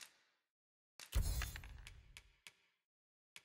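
Coins jingle briefly.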